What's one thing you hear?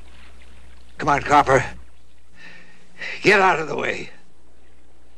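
A man shouts angrily.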